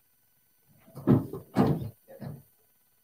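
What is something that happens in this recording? A heat press clunks as its lid is opened and closed.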